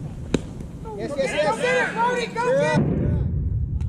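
Men shout and cheer excitedly from a distance.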